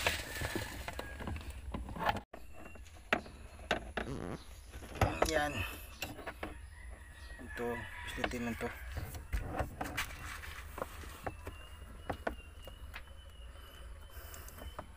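Plastic parts click and rattle as hands handle them.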